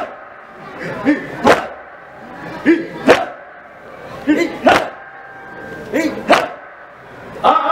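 A young man chants loudly through a microphone.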